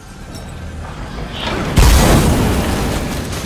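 A burst of flame whooshes and roars loudly.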